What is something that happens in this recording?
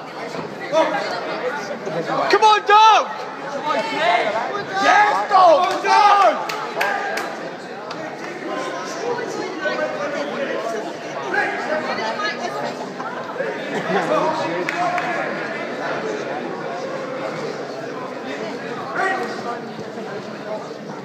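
A crowd of men shouts and cheers loudly in a large echoing hall.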